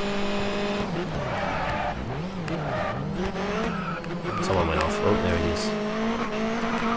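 Tyres squeal through a corner.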